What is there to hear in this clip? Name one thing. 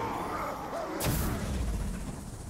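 A fiery blast bursts with a loud whoosh.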